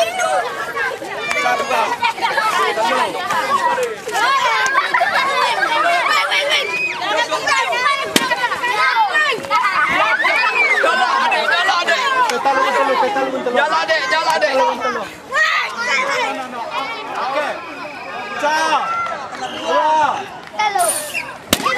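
A crowd of children shout and cheer excitedly outdoors.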